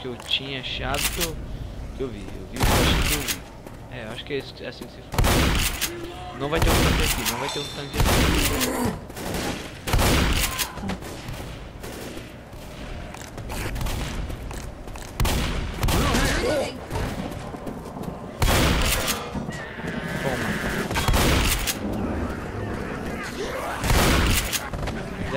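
A shotgun fires loud blasts again and again.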